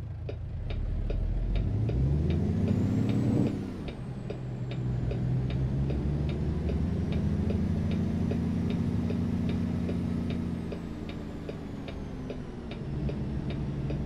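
A truck's diesel engine rumbles and revs up, then drops to a steady drone.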